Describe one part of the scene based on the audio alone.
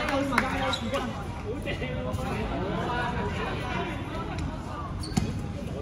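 Young people chatter and call out across a large echoing hall.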